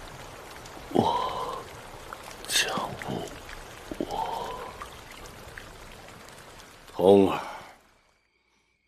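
A man speaks weakly and strained, close by.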